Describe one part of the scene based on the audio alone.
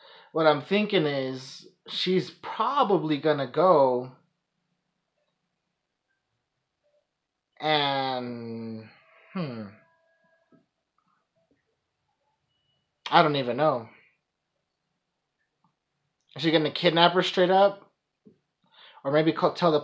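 A young man talks casually and close to a microphone, in short bursts with pauses.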